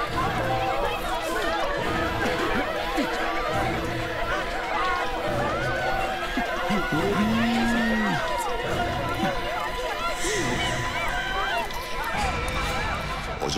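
A crowd chatters busily outdoors.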